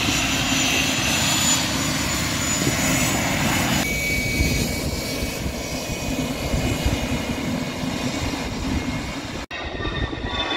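A jet engine whines loudly.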